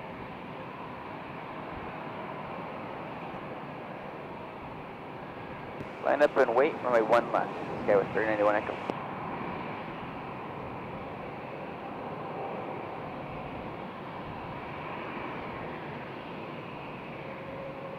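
A jet airliner's engines hum steadily in the distance as it taxis.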